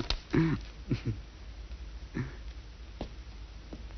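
A woman laughs softly nearby.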